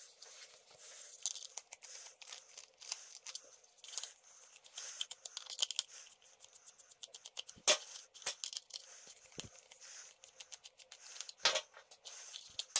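A screwdriver squeaks and clicks as it turns screws.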